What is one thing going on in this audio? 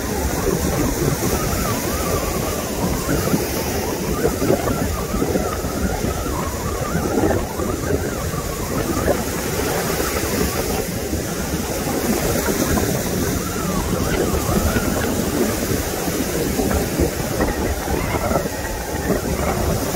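Small waves wash steadily onto a sandy shore.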